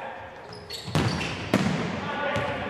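A ball is kicked with a hard thud.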